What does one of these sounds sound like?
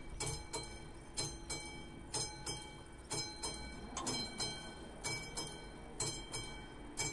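A level crossing bell rings in a steady, even rhythm.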